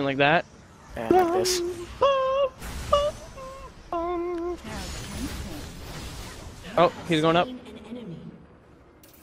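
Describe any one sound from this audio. Magical spell effects whoosh and crackle during a fight.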